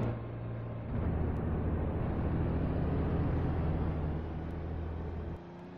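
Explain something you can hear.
A car engine hums steadily as the car drives off.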